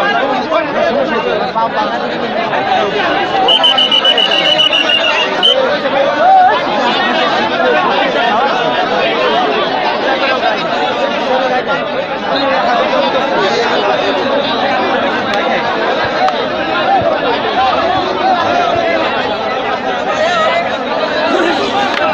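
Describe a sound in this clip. A large outdoor crowd chatters and cheers loudly.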